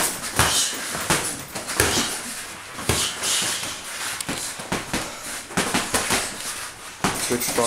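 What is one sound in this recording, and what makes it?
Boxing gloves thud against punch mitts in quick bursts.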